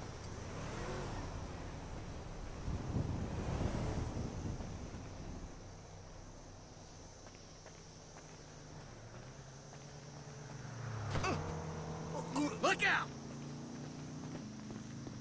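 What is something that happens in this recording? Footsteps crunch on dry gravel.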